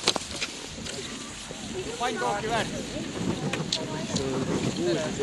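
Ski poles click against hard snow.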